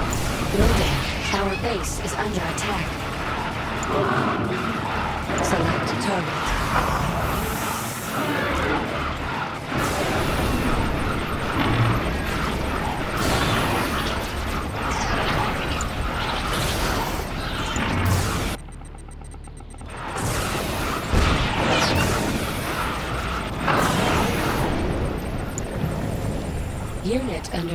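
Game weapons fire and energy blasts crackle in rapid bursts.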